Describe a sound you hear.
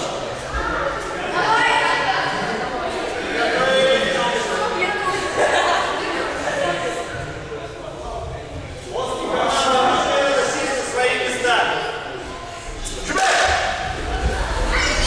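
A man speaks loudly to a group in a large echoing hall.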